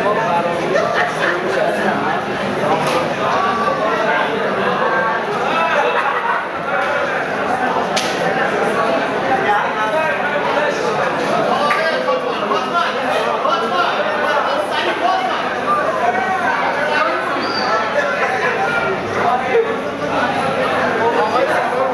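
Several men talk at once nearby, in a busy, echoing room.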